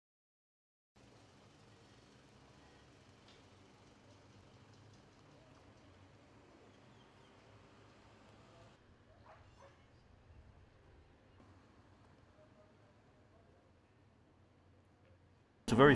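Traffic hums faintly along a street outdoors.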